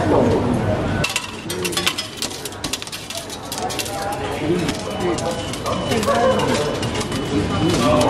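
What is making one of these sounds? Coins clink as they drop into a ticket machine's tray.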